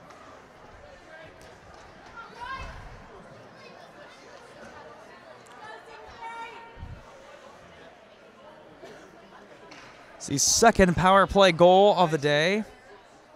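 Voices murmur faintly in a large echoing hall.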